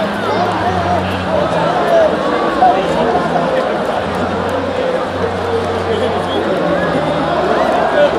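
A woman speaks cheerfully through a microphone over loudspeakers.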